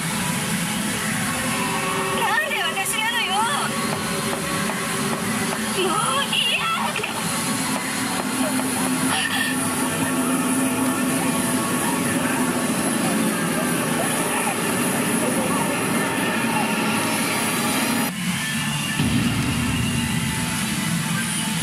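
A pachinko machine plays loud electronic music and sound effects.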